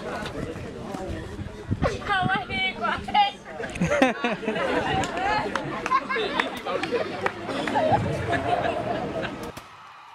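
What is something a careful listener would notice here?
Several young people shout and talk excitedly nearby, outdoors.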